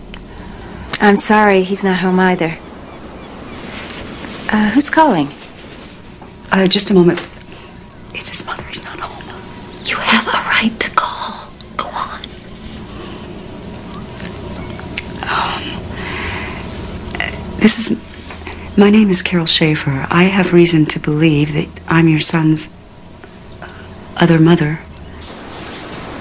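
A woman answers over a phone line.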